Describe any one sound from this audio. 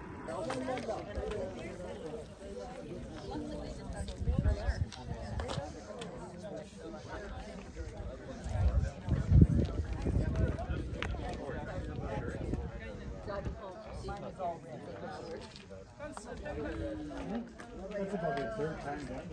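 Several adults chat and call out nearby, outdoors.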